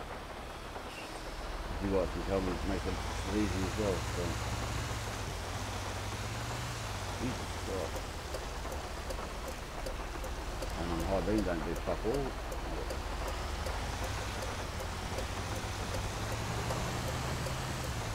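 A large truck engine rumbles steadily as it drives.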